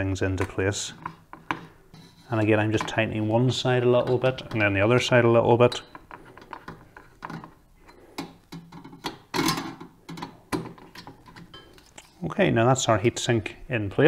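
Cables rustle and tap against a metal case as hands handle them.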